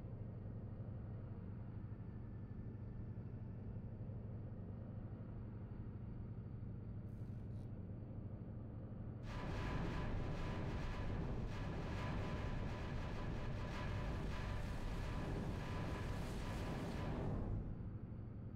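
A spaceship engine hums low and steadily, growing louder and rougher partway through.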